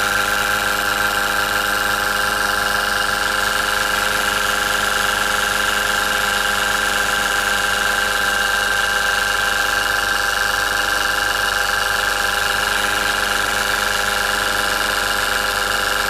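A tiny steam engine runs with a steady, fast, high buzzing whir.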